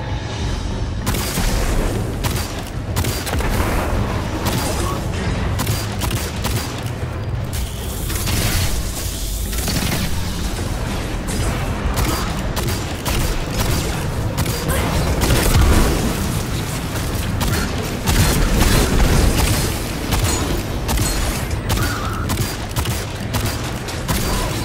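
A heavy pistol fires shot after shot.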